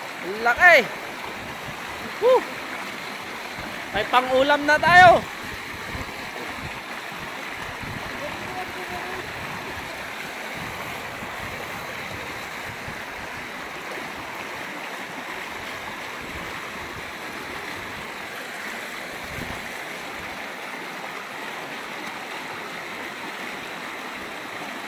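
A shallow river rushes over rocks.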